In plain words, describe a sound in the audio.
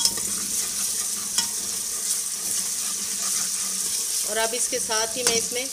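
Onions sizzle and crackle in hot oil.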